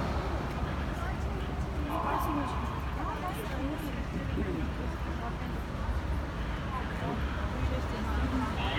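Traffic rumbles along a city street outdoors.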